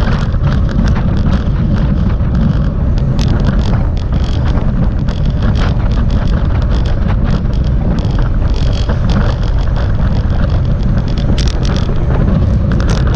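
Bicycle wheels whir on the road.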